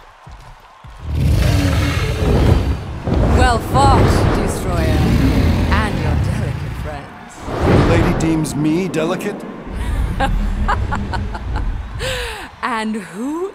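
A woman speaks with animation, in a deep theatrical voice.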